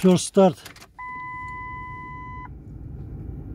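A car's warning chime sounds steadily.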